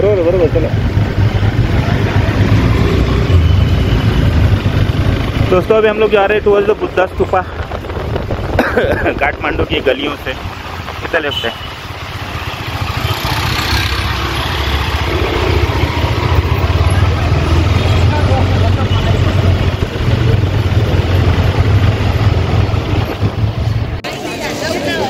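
A motorbike engine hums steadily as it rides along.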